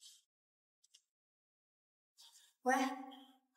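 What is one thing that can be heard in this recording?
A young woman talks on a phone in a calm voice.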